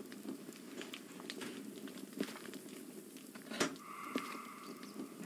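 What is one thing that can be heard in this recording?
A locomotive engine rumbles steadily.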